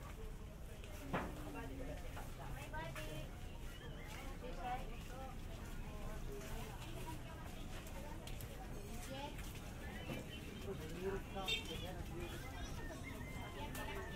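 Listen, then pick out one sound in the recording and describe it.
A crowd of men and women chatter all around in a busy market.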